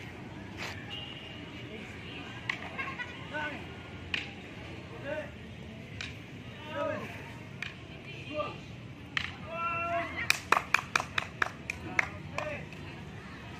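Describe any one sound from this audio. Wooden sticks clack together sharply in quick bursts.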